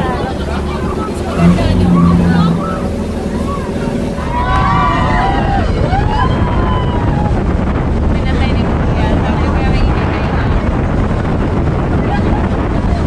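Waves splash and churn against the hull of a moving boat.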